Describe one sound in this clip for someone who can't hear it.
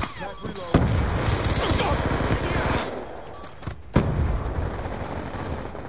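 Explosions boom loudly and rumble.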